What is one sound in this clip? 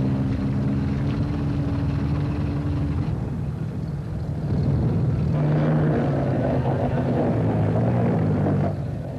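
A tracked armoured vehicle's engine rumbles.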